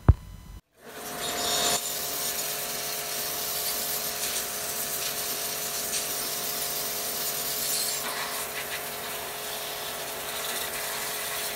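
A chainsaw engine idles steadily close by.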